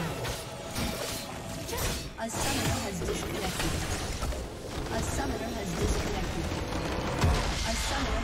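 Spell effects crackle and whoosh in a game battle.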